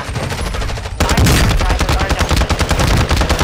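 A rifle fires rapid shots, loud and close.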